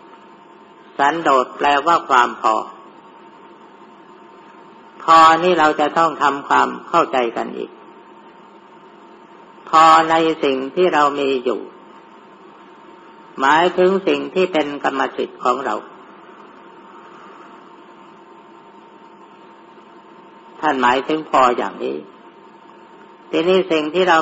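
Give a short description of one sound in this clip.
An elderly man speaks calmly in short phrases with pauses.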